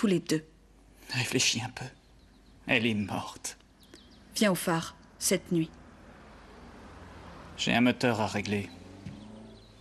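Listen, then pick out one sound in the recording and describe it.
A young man speaks softly, close by.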